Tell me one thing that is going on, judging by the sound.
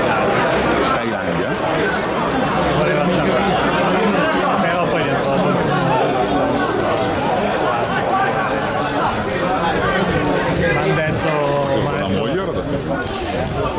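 A crowd chants and shouts in the stands.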